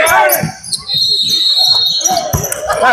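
A referee blows a whistle.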